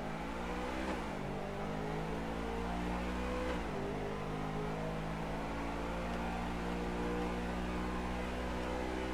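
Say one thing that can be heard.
A car engine hums steadily, dropping in pitch briefly as gears change twice.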